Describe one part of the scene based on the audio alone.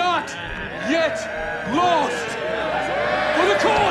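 A man speaks loudly and rousingly.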